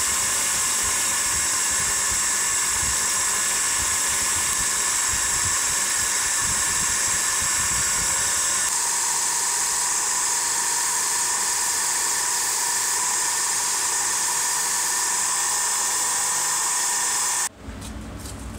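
Metal grinds against a spinning wheel.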